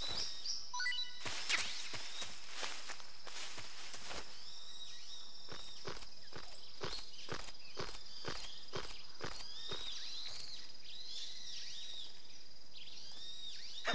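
Footsteps rustle through dense grass.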